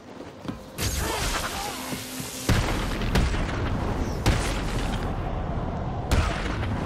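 Heavy punches and kicks land with hard thuds.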